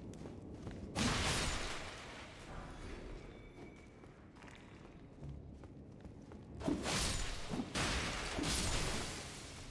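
A sword swings and strikes in a fight.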